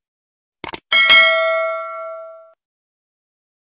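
A bell chimes brightly and slowly fades.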